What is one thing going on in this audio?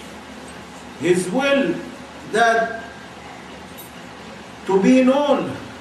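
An elderly man speaks slowly and calmly, close by, in short phrases.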